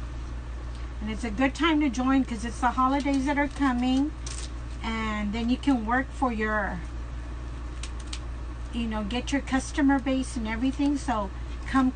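An older woman talks calmly and close by.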